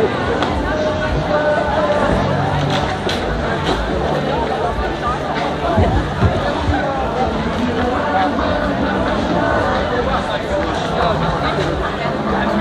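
A crowd of men and women chatters all around, close by.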